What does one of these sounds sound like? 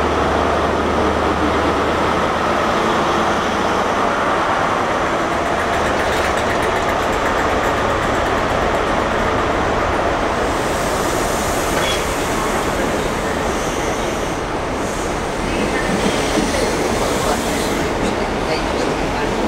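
A train rolls past close by with a steady rumble and clatter of wheels on rails.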